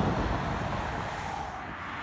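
A car whooshes past close by.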